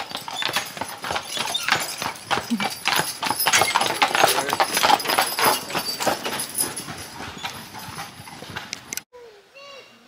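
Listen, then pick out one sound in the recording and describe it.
Wagon wheels crunch and rattle over gravel.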